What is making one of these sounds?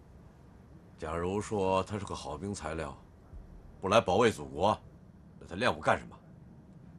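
A man speaks firmly and close by.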